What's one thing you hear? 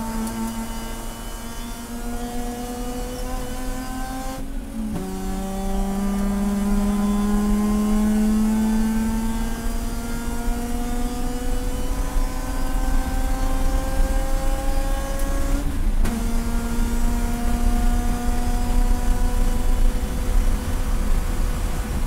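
Wind rushes and rumbles around a fast-moving car.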